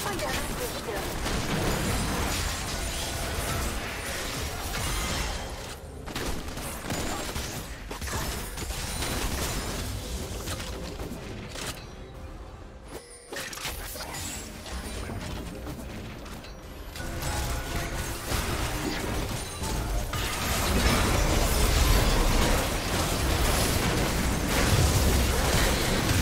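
Spell effects whoosh and crackle in a video game battle.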